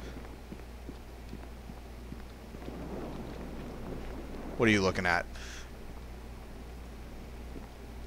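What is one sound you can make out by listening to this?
Footsteps tread across a stone floor.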